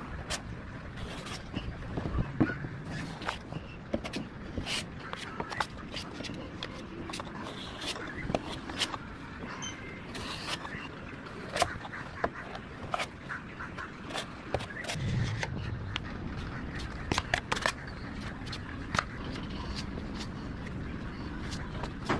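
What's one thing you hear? A metal scraper scrapes and taps against a car body.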